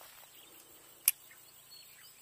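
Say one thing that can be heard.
Water splashes in a small stream.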